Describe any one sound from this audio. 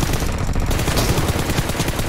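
Rapid gunshots crack from an automatic rifle.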